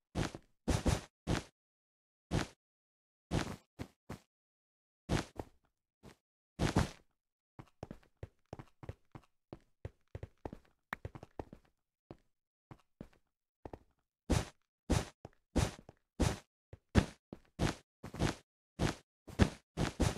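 Blocks are placed with quick, soft thuds.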